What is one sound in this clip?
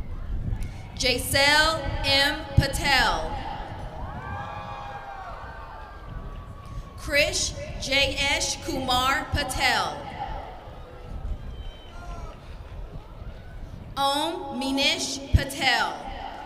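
A woman reads out names through a loudspeaker, in a wide open outdoor space.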